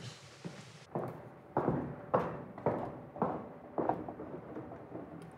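High heels click across a stage floor.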